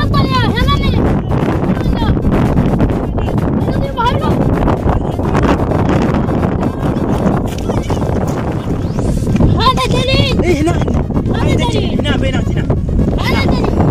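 Young boys shout excitedly outdoors.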